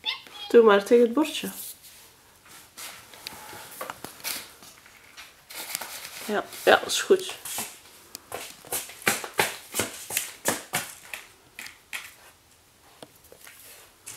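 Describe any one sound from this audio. A puppy's claws click on a tile floor.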